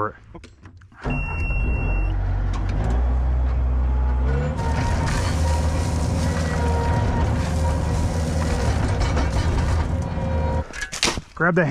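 A skid loader engine rumbles steadily up close.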